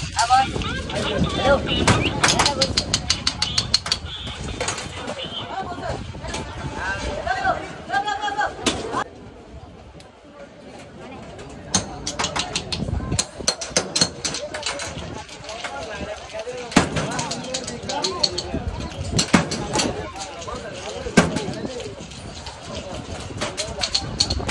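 Metal cups clink and clatter.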